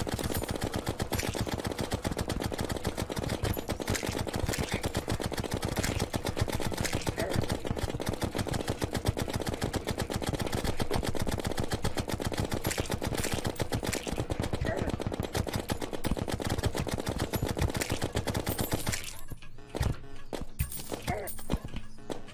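Rapid game battle sounds clatter and thump quickly.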